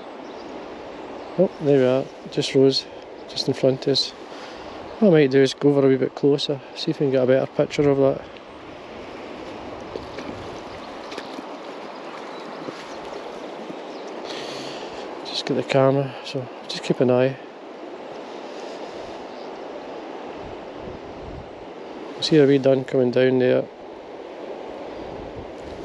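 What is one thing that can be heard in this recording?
Shallow river water flows and ripples steadily over stones outdoors.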